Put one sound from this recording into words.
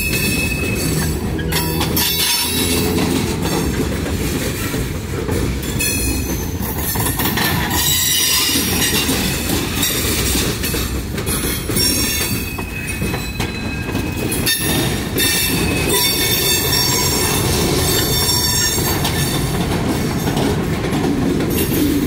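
Freight cars rumble past close by on the tracks.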